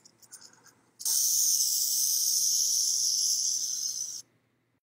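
A rattlesnake rattles with a steady, dry buzz.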